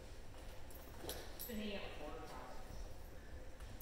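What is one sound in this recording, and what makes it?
A man urges on a dog with animated calls, echoing in a large hall.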